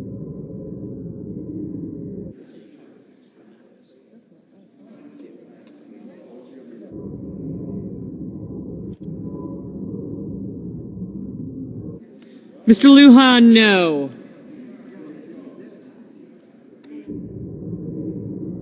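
Several men talk quietly in a large, echoing hall.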